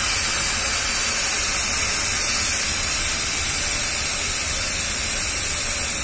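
A machine runs with a steady, loud hiss and hum.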